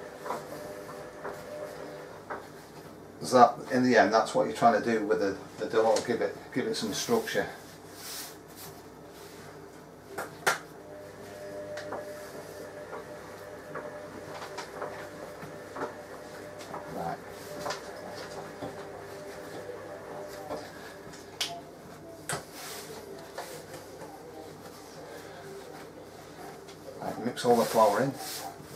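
Hands knead and slap soft dough on a hard counter.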